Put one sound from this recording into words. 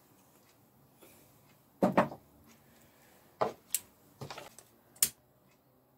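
Objects clink and knock on a tabletop.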